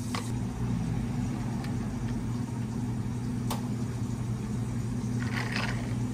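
Espresso pours over ice with a soft trickle.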